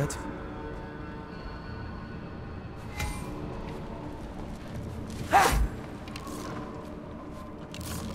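Footsteps crunch on snow and stone.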